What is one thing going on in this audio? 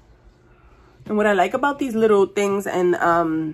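A woman talks close to the microphone with animation.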